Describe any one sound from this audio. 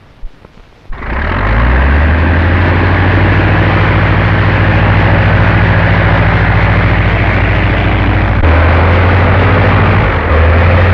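An aircraft engine roars loudly and steadily.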